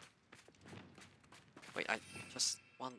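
Footsteps run quickly over wet ground.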